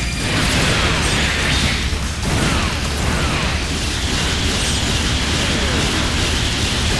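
Robot thrusters roar steadily.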